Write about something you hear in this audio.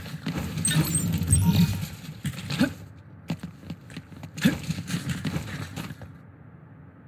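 Blows and impacts thud during a fight.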